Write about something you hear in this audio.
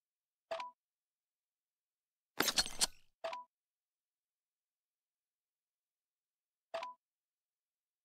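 Short game interface chimes sound as buttons are tapped.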